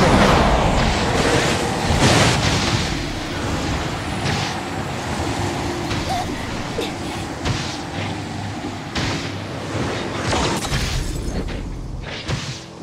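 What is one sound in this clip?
Heavy impacts thud and boom.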